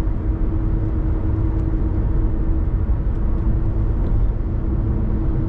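A car engine hums steadily at highway speed.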